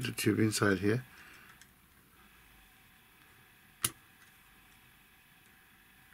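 Plastic parts click softly.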